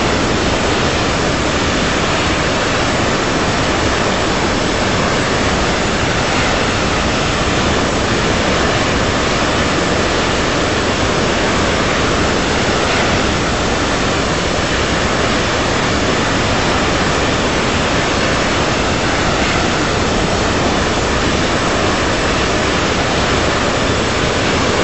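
Wind rushes steadily past an airliner.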